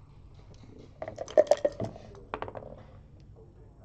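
Dice rattle and clatter across a wooden board.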